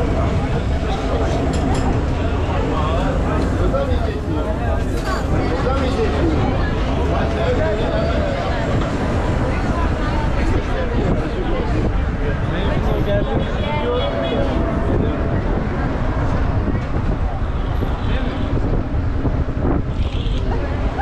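Many people chatter and talk nearby.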